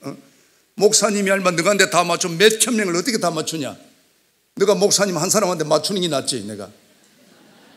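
An elderly man speaks firmly into a microphone in a large hall.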